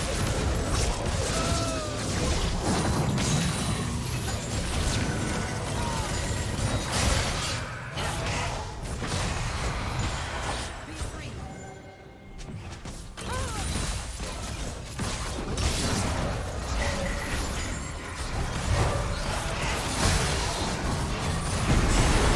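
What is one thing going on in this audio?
Video game battle effects burst, clash and whoosh in rapid succession.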